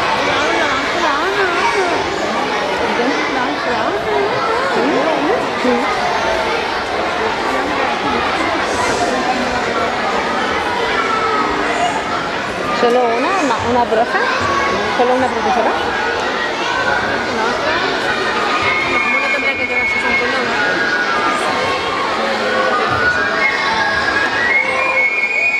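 Many children chatter and call out in a large echoing hall.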